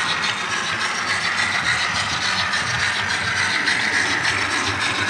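A small electric model train whirs steadily along its track.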